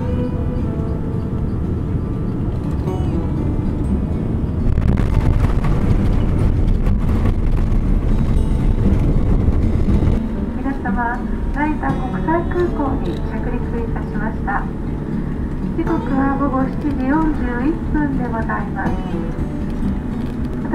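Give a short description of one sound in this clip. A jet engine roars loudly as a plane speeds down a runway.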